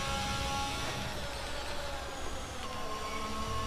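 A racing car engine drops sharply in pitch as the car slows for a corner.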